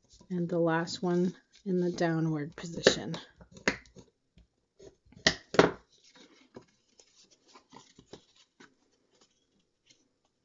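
Paper crinkles and rustles as it is folded and creased.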